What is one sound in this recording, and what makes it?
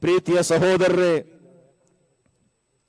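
A young man chants loudly into a microphone, his voice echoing through loudspeakers.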